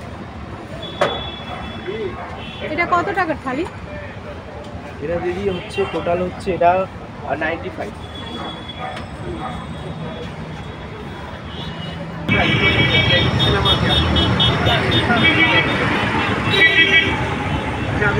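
Metal plates clink and scrape as food is served.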